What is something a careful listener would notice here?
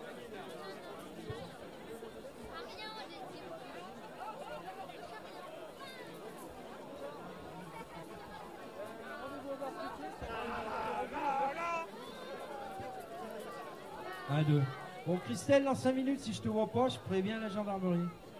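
Several men talk nearby in a murmuring crowd.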